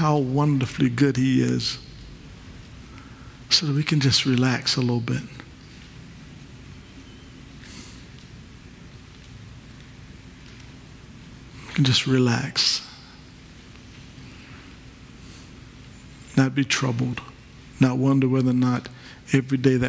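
A man speaks calmly through a microphone, pausing often between phrases.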